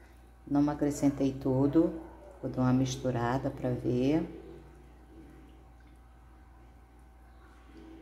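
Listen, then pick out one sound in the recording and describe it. A spatula stirs and sloshes liquid in a pan.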